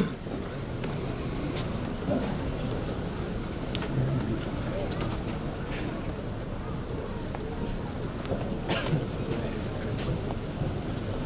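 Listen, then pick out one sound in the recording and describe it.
A man speaks through a microphone and loudspeakers outdoors.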